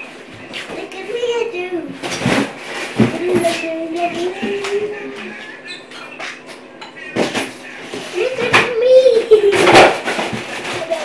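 A young child talks and calls out in a high voice nearby.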